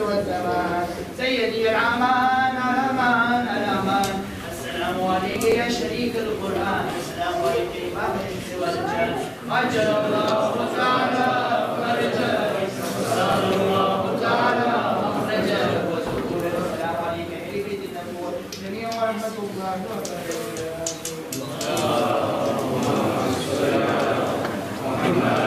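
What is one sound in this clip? A man recites a prayer in a melodic chant, heard through a loudspeaker in an echoing hall.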